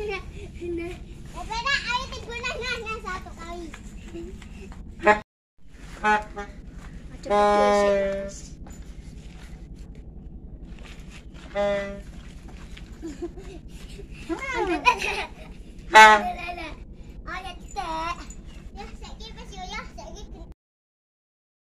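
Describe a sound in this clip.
Young children shout and chatter playfully nearby.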